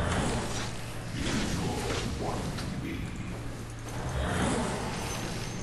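Magical battle effects whoosh and crackle.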